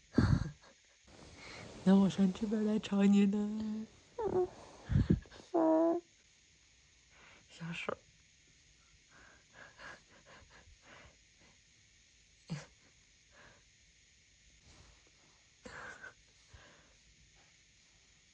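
A hand softly rustles through hair against a pillow.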